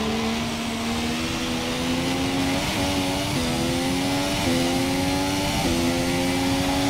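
A racing car engine screams, rising in pitch through each gear and dropping briefly at each gear change.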